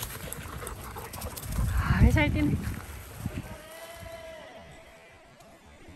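Dogs' paws patter on dry ground as they run.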